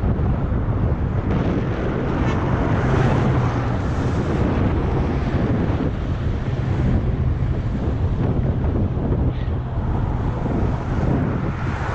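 Bicycle tyres hum on rough asphalt.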